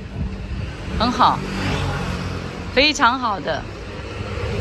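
An elderly man speaks close by.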